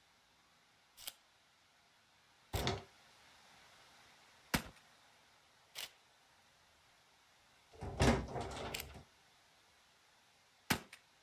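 Gear rustles and clicks in short bursts as items are handled.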